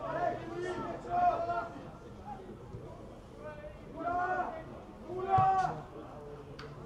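Young men shout across a sports field outdoors.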